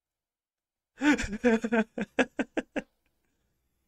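A young man laughs briefly into a close microphone.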